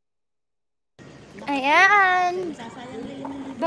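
A young woman speaks close by in a playful, sing-song voice.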